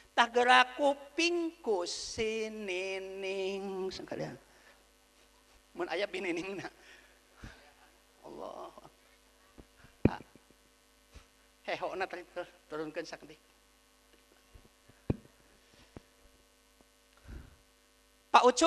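A man speaks and sings with animation through a microphone and loudspeakers.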